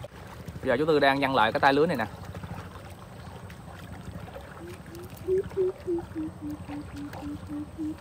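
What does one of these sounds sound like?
A fishing net swishes through the air and splashes onto the water.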